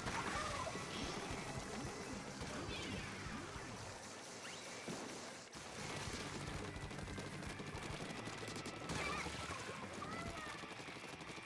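Game weapons fire with wet splattering sounds.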